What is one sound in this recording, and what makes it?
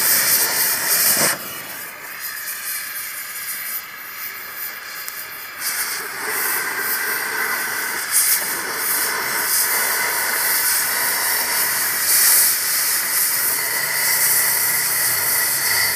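Molten metal crackles and sizzles as it drips and burns on the ground.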